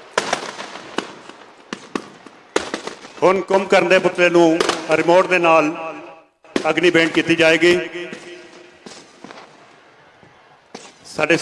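Firecrackers crackle and bang.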